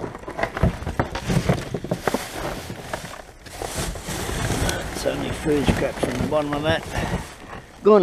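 A plastic bin lid bangs shut.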